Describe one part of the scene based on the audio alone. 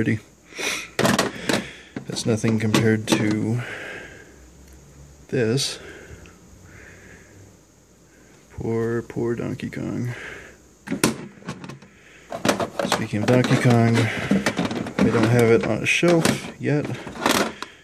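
Plastic cartridges clack against each other as they are shuffled in a drawer.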